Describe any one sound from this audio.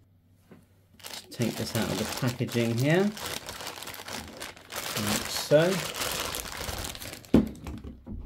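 Plastic wrap crinkles and rustles as hands unwrap it.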